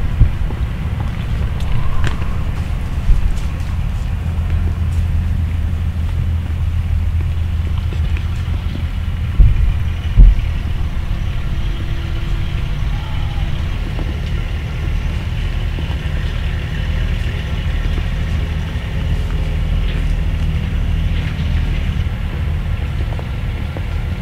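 Deer hooves rustle through dry leaves.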